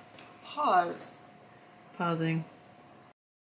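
A woman speaks playfully close by.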